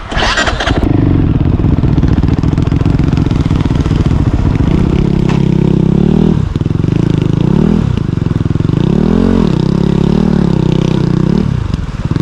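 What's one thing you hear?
Another motorcycle engine revs as a rider approaches.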